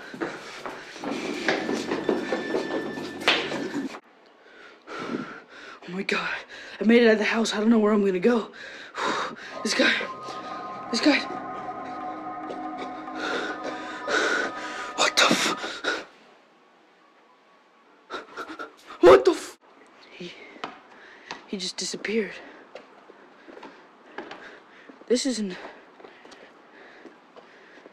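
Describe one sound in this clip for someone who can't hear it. A teenage boy talks up close.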